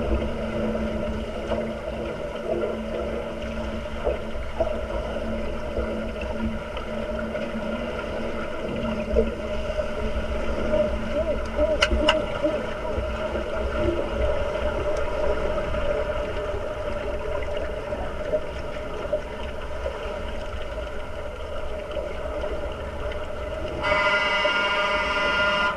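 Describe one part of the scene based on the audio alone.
Underwater, a muffled rumble of water and splashing goes on steadily.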